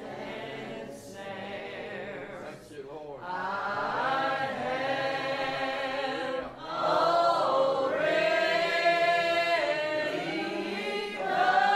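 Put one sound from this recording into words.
A congregation of men and women sings a hymn together in a hall.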